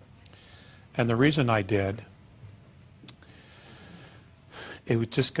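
A man speaks to an audience, pausing between phrases.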